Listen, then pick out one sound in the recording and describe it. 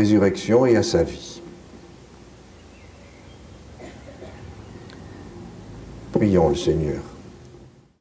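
An elderly man chants into a microphone.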